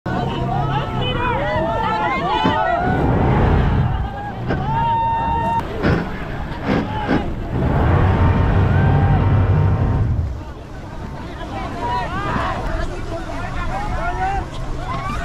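Many people shout and cry out from the water nearby, outdoors.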